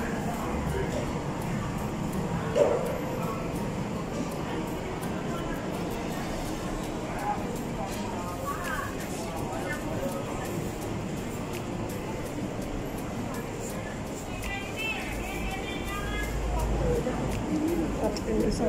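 A busy outdoor street market murmurs with many distant voices.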